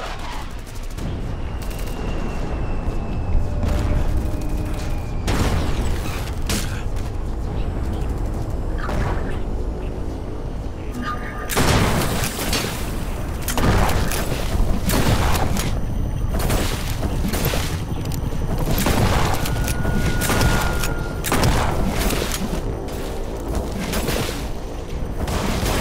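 Shotgun blasts boom loudly, one after another.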